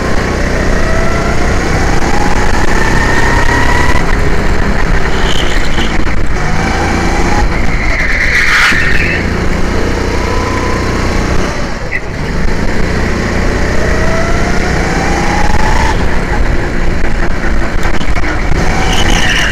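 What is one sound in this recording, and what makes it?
A go-kart engine whines loudly close by, rising and falling in pitch as it speeds up.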